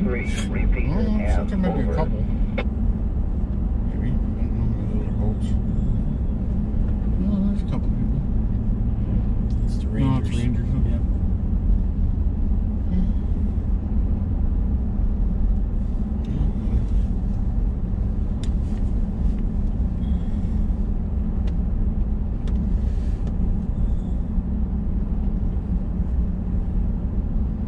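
Tyres roll over a rough road surface with a low rumble.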